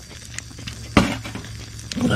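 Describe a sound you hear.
A can is set down on a metal table with a clunk.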